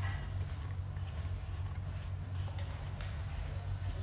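Chopped herbs are scraped off a plastic board into a bowl.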